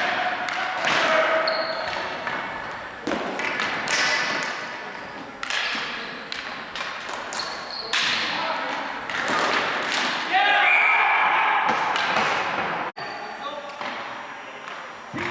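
Young men shout to each other across an echoing gym.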